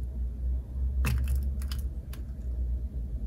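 A spoon clinks against ice cubes in a glass.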